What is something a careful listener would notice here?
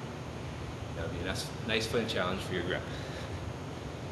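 A man speaks up close in a room with a slight echo.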